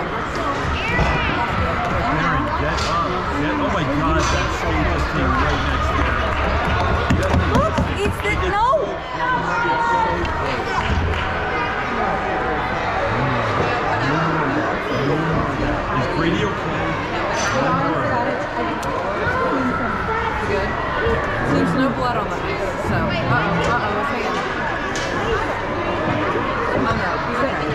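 Young children shout and chatter in a large echoing rink.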